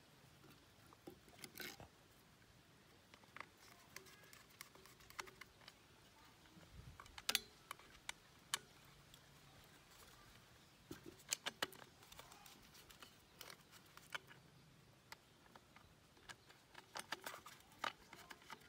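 A screwdriver clicks and scrapes against metal parts of a water pump.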